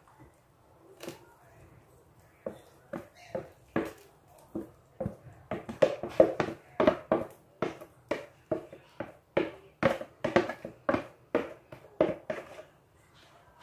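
A wooden spoon knocks and scrapes against a plastic bowl.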